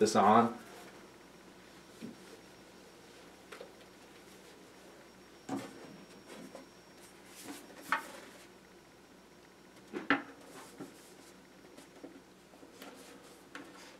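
A plastic helmet knocks and rubs softly as it is put on.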